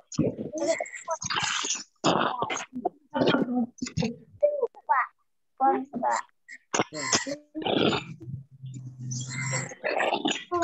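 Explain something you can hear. A boy talks with animation over an online call.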